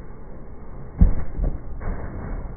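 A body thuds heavily onto the ground.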